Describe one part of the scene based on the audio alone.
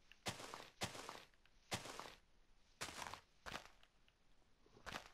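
Leaves rustle and crunch in short repeated bursts as blocks break.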